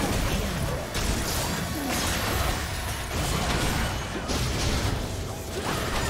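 Game spell effects crackle and boom during a fight.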